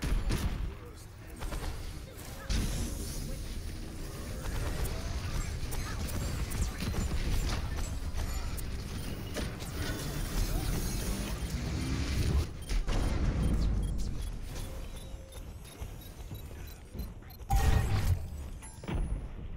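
Weapons fire and energy blasts crackle in rapid bursts.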